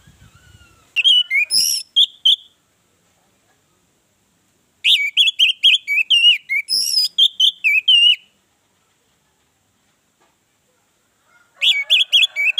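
An orange-headed thrush sings loud, varied phrases in bursts.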